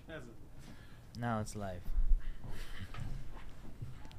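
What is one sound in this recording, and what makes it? A chair creaks as a man sits down.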